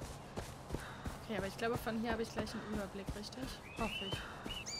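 A woman talks calmly into a close microphone.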